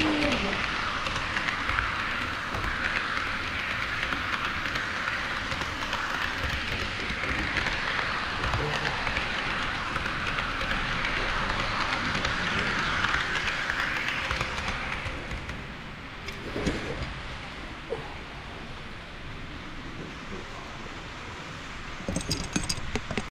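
A model train rumbles and clatters along its track close by.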